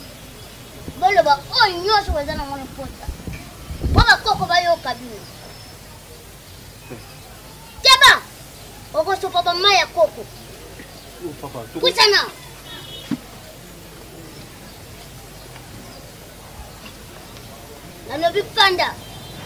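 A woman speaks loudly and with animation nearby.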